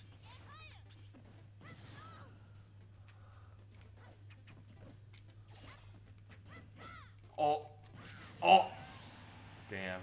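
Blows land with sharp smacks and thuds in a fast fight.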